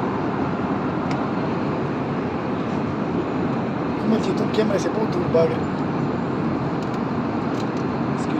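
A steady low roar of an airliner cabin fills the background.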